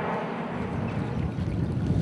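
A duck splashes in shallow water.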